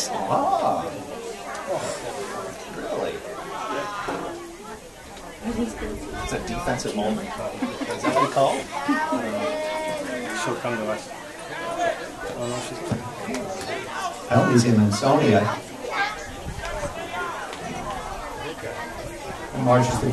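Men and women talk and chatter close by, outdoors.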